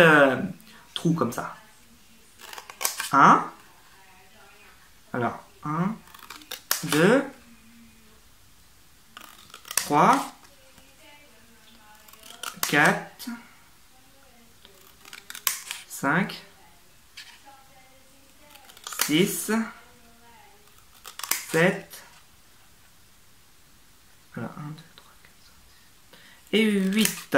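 Scissors snip through thin card.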